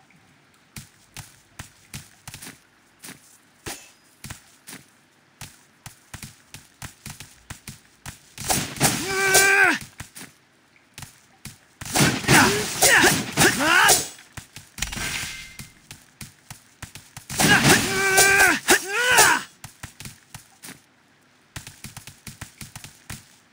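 Quick footsteps patter across a hard floor.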